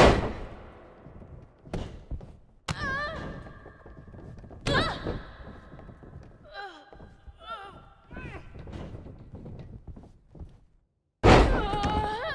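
Heavy bodies thud and slam onto a wrestling mat.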